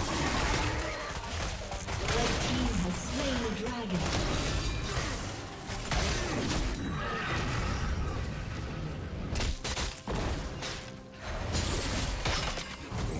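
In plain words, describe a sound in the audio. Spell effects whoosh and crackle in a video game battle.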